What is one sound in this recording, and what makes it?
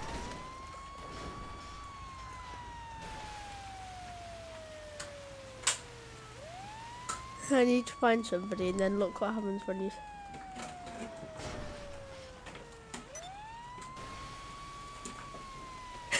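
A fire truck siren wails, rising and falling slowly.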